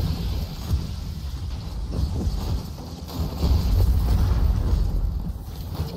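Gunfire and blasts from a video game rumble steadily.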